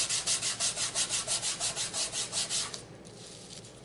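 Hands rub quickly back and forth across a sheet of paper.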